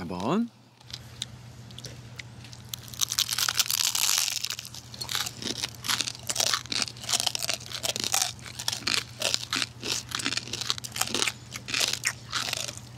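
Men bite into crispy fried food, crunching loudly close to a microphone.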